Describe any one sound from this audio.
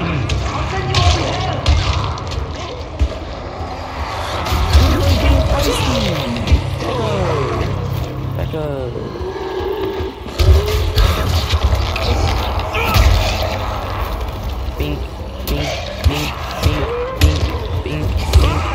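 Blows from a hammer thud heavily against bodies.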